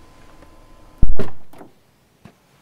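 A car door thuds.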